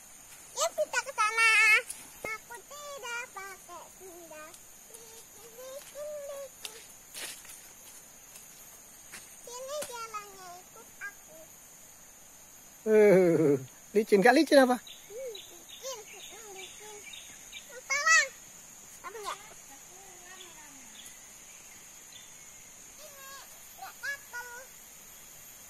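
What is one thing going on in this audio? A young girl talks and calls out nearby.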